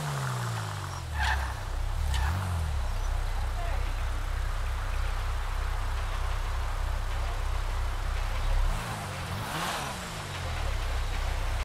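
A sports car engine idles.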